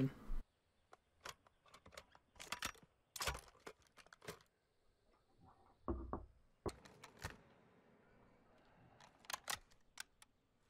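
A rifle's metal parts click and clatter as it is handled.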